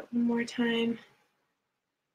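A young woman speaks calmly, close to the microphone.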